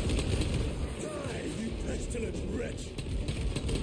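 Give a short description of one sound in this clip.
A man shouts gruffly.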